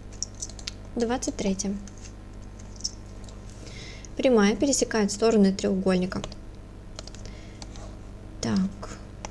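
A young woman speaks calmly into a close microphone, in short bursts.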